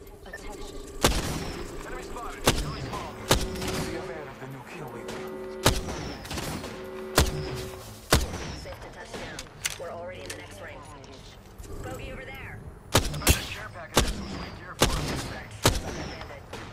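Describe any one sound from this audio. A rifle fires loud single shots in quick bursts.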